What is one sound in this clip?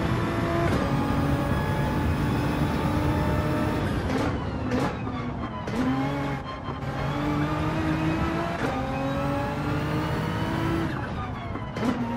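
A racing car engine roars loudly, rising and falling in pitch as the gears shift.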